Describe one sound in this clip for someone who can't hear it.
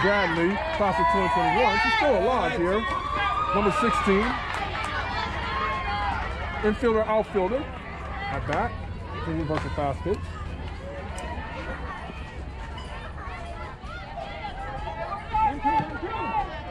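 Young girls shout and cheer loudly outdoors.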